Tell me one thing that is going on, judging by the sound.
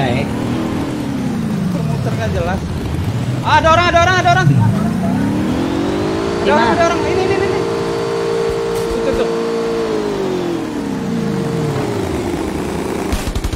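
A vehicle engine revs up and down.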